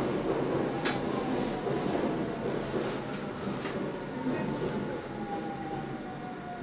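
Train brakes squeal softly as the train comes to a stop.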